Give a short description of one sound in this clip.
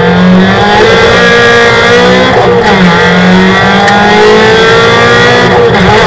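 A race car engine roars loudly from inside the cabin, its pitch rising and falling with gear changes.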